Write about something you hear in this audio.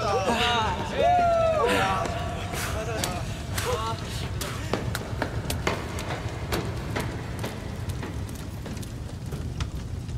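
Footsteps run and stride across a wet hard floor.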